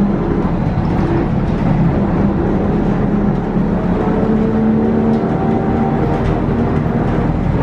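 Another bus passes close by outside.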